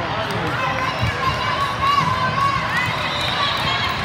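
A volleyball thumps against a player's arms.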